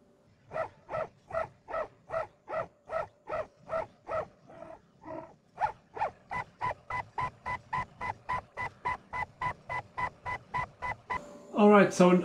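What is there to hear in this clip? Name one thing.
A motorised machine whirs in short, evenly repeating pulses.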